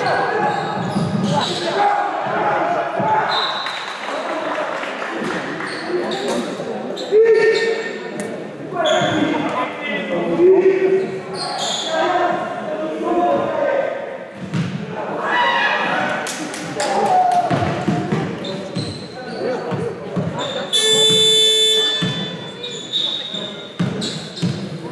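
Players shout and call out in a large echoing hall.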